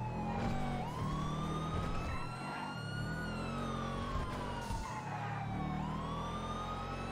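A car engine revs hard and shifts gears as it accelerates.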